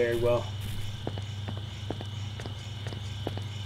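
Footsteps tread steadily on grass.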